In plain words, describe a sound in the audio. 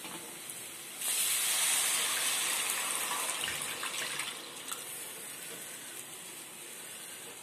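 Batter pours into a hot pan and sizzles loudly.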